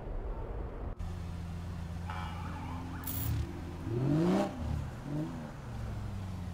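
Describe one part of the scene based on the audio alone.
A sports car engine hums and then revs up sharply.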